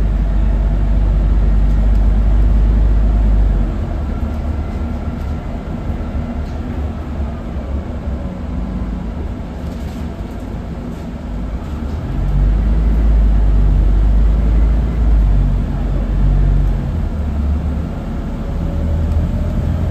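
A bus engine rumbles low and steadily as the bus drives along.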